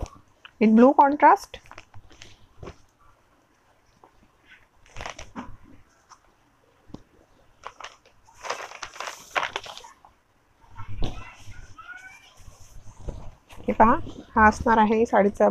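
Silk fabric rustles as it is unfolded and handled.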